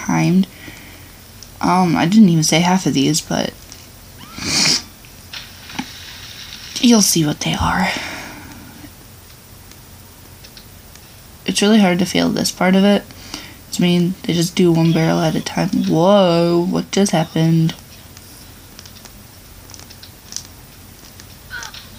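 Sound effects play from a small handheld game console speaker.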